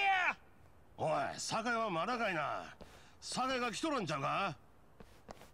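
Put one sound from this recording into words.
A man asks loudly and gruffly, heard close up.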